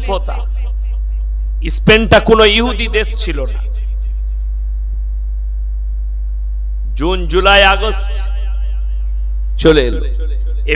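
A man preaches loudly and with passion into a microphone, heard through loudspeakers.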